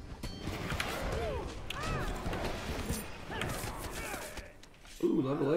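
Weapons clash and thud in a fast fight.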